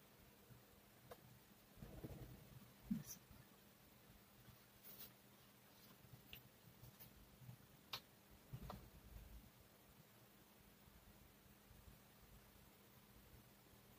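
A marker squeaks faintly on a whiteboard.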